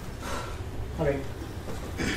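A man speaks briefly in a large room.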